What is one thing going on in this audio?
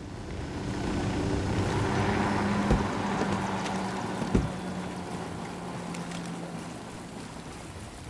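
A helicopter engine whirs and its rotor thumps nearby, then fades.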